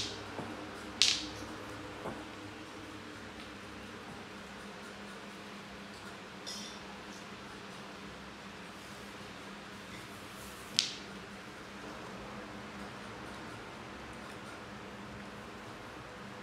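A broom's bristles swish across a hard floor.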